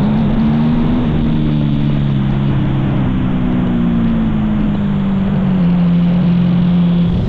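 An engine hums steadily and slowly drops in pitch as the vehicle slows.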